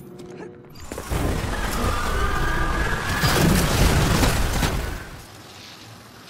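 Energy gunfire blasts in rapid bursts.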